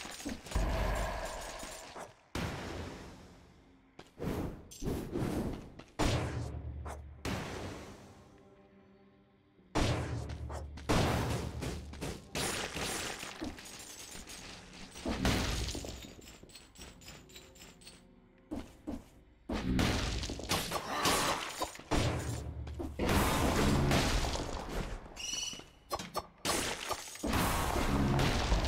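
Blades slash and strike in quick, sharp bursts.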